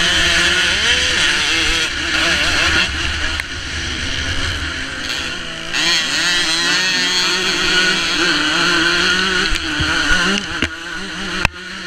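A dirt bike engine roars close by, revving up and down.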